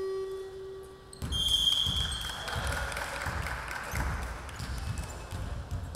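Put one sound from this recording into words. A basketball thumps on the court floor.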